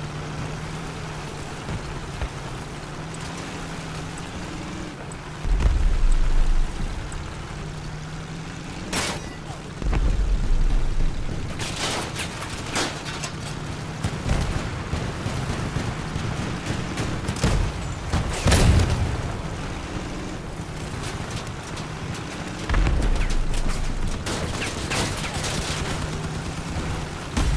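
A heavy vehicle engine drones steadily.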